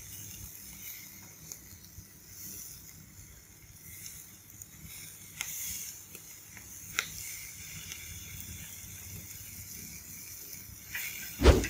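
Chopsticks tap and scrape against a metal grill.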